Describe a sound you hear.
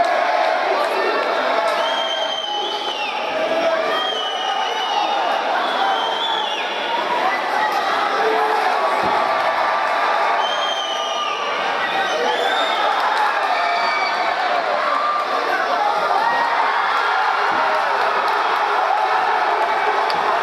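A large crowd cheers and shouts loudly throughout.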